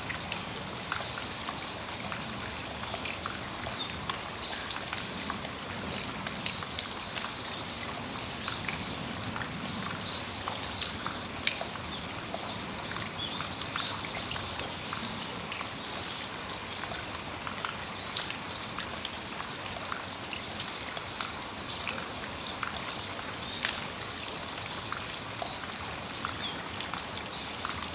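Raindrops drip and tap on a metal awning.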